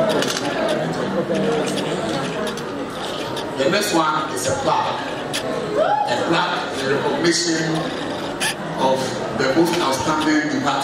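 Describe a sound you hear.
A man speaks animatedly into a microphone, heard over a loudspeaker in an echoing hall.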